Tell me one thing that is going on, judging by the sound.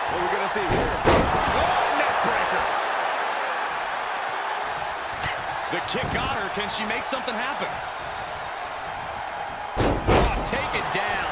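Heavy bodies slam hard onto a wrestling mat with a booming thud.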